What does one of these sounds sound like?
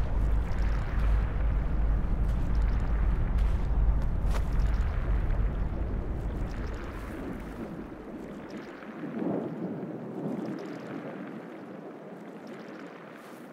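Wind rushes steadily and slowly dies down.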